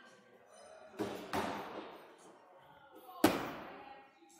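An axe thuds sharply into a wooden target, ringing briefly in an echoing hall.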